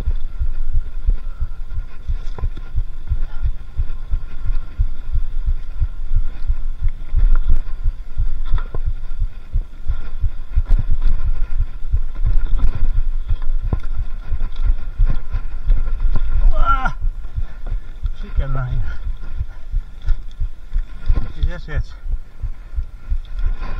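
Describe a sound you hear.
Wind buffets a microphone in low, steady rumbling gusts.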